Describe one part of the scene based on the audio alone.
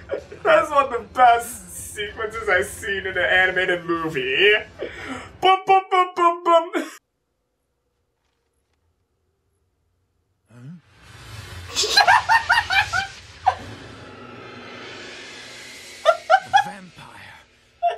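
A young man laughs close to a microphone.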